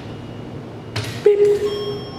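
A lift button clicks.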